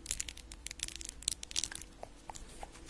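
Fingernails tap and scratch crisply on a small object close to a microphone.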